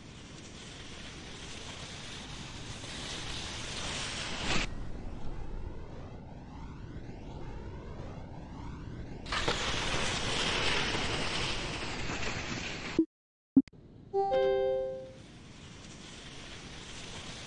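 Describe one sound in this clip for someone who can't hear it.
Skis hiss steadily down an icy ramp.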